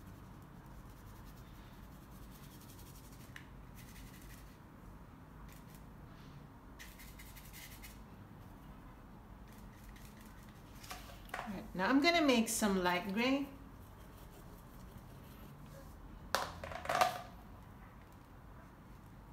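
A brush strokes softly across a painting surface.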